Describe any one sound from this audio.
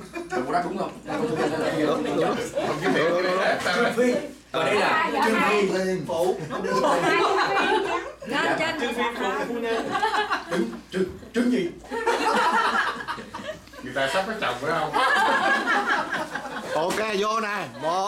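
A group of adult men and women talk over one another and laugh close by.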